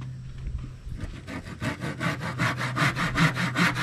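A hand saw cuts through wood with quick, rhythmic strokes.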